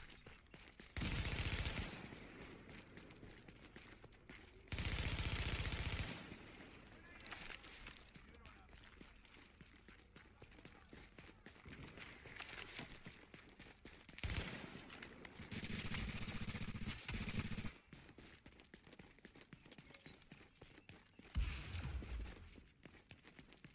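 Automatic gunfire rattles in short loud bursts.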